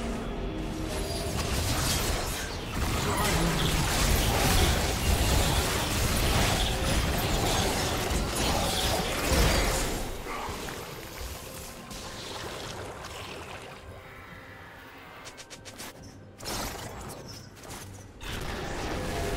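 Game characters' attacks clash and thud.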